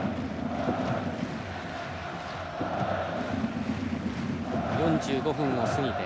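A large stadium crowd chants and roars steadily outdoors.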